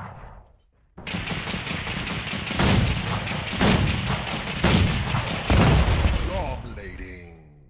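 Heavy machine guns fire in rapid bursts.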